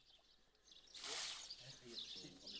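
Water splashes as it is poured from a bucket into a hole.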